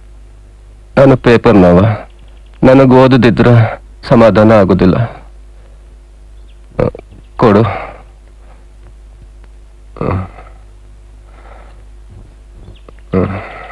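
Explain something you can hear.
A middle-aged man speaks with emotion, close by.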